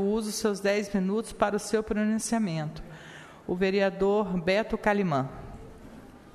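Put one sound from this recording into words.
A woman reads out into a microphone.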